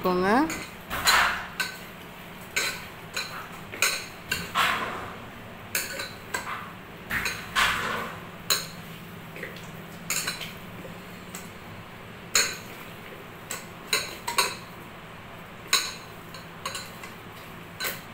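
A hand squelches and squishes through wet raw meat.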